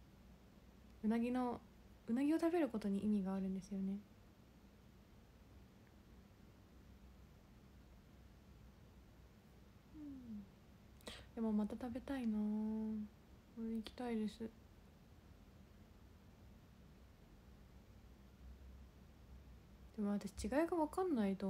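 A young woman speaks softly and close to the microphone, in short bursts with pauses.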